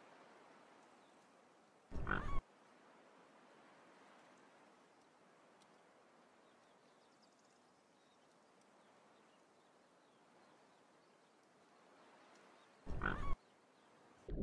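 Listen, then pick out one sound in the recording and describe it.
Swans nibble and tear at short grass close by.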